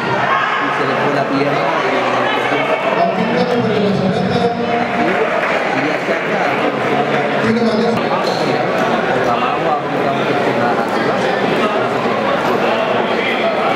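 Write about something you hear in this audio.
A crowd chatters and murmurs steadily in a large echoing hall.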